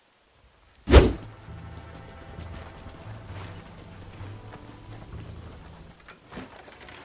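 Wagon wheels rumble over rough ground.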